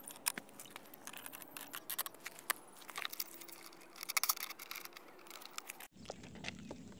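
Metal tools clink and click against a plastic wheel.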